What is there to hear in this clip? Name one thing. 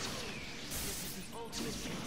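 A blow lands with a dull thud.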